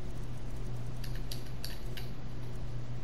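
Soft game menu ticks sound as items are scrolled through.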